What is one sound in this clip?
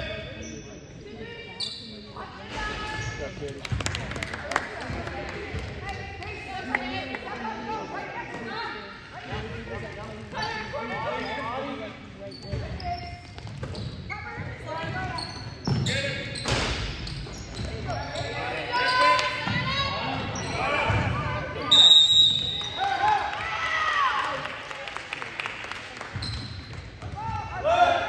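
A basketball bounces on a wooden gym floor.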